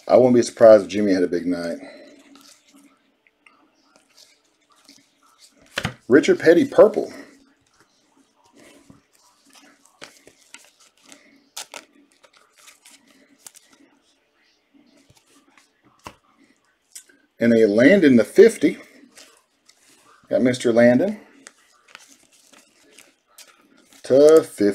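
Trading cards in plastic sleeves rustle and click as they are handled.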